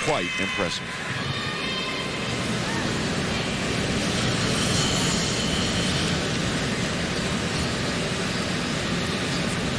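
A large arena crowd applauds and cheers.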